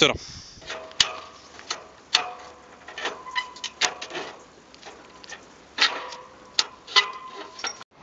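A man's hands clank on metal bars as he swings along them.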